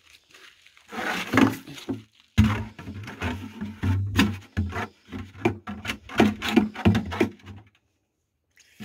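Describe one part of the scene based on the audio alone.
A plastic watering can bumps and knocks against stone.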